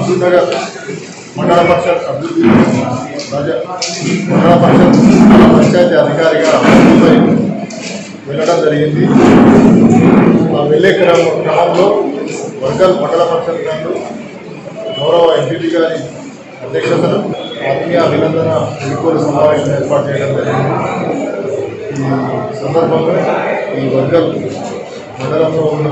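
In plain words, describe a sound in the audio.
A middle-aged man speaks steadily and earnestly into a microphone close by.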